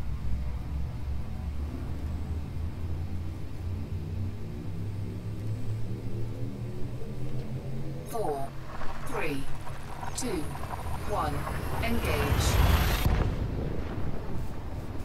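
A spaceship engine hums low and steady.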